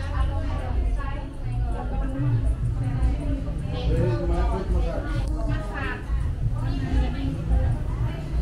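Young women talk and chat nearby.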